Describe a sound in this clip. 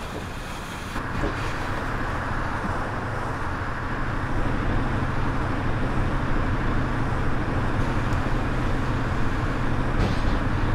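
A diesel city bus engine idles.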